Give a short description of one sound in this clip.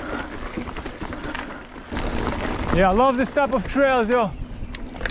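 Bike tyres roll and rattle over a dirt trail.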